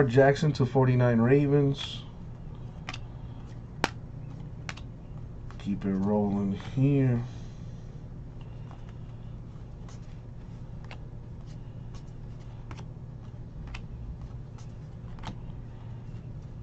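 Stiff cards flick and slide against each other up close.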